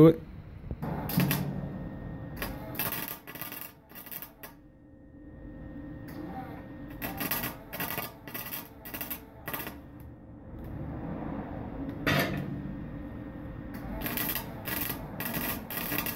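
A welding arc crackles and sizzles in short bursts.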